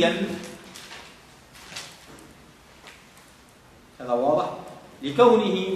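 A man speaks calmly and slowly.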